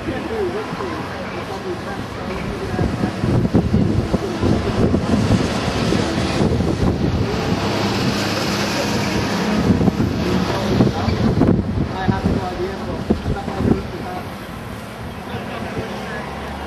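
A crowd murmurs and chatters at a distance outdoors.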